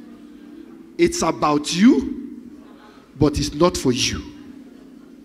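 A man preaches loudly and with animation through a microphone in a large echoing hall.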